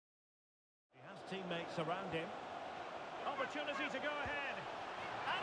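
A stadium crowd murmurs and cheers.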